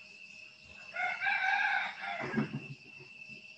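A man speaks briefly, heard through an online call.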